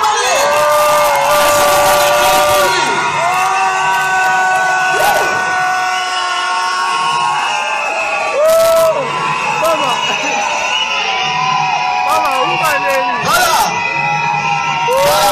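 Women sing loudly together in a lively crowd.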